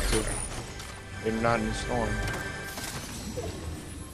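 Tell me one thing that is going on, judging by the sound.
A treasure chest creaks open with a jingling chime.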